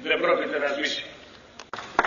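An elderly man speaks into a microphone over loudspeakers outdoors.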